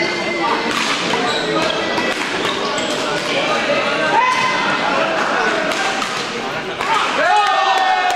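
A racket strikes a shuttlecock with a sharp pop.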